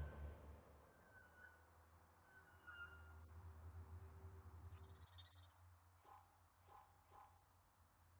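Soft electronic beeps and chimes sound from a menu.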